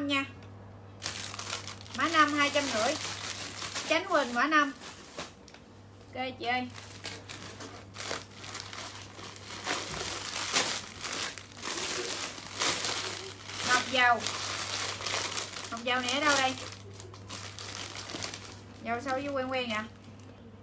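Plastic bags rustle and crinkle as they are handled.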